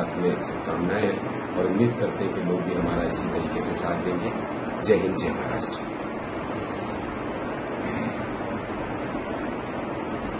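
A middle-aged man speaks calmly into a microphone at close range.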